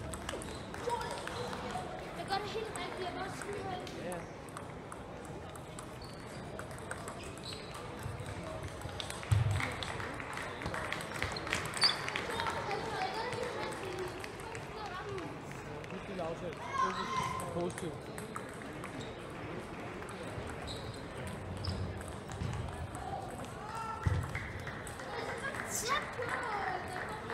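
A crowd of children and adults chatters throughout a large echoing hall.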